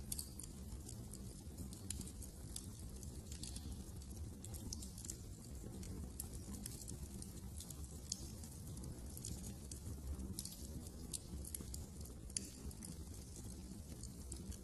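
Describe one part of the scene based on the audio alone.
A wood fire crackles and pops steadily.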